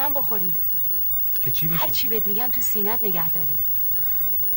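A woman speaks in a distressed, wailing voice close by.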